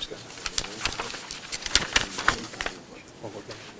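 Papers rustle and crinkle close by.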